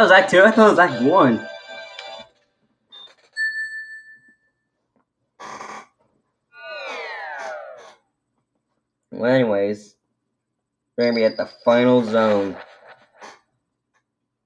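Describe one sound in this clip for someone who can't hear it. Electronic video game sound effects beep and chime from a television speaker.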